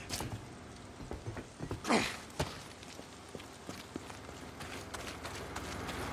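Footsteps run over gravel.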